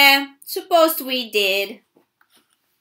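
A woman reads aloud animatedly, close by.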